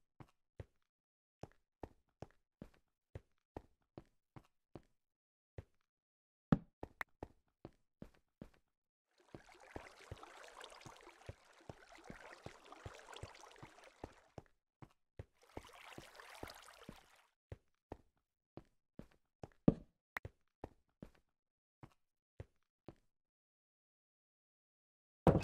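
Footsteps tap steadily on a hard stone floor.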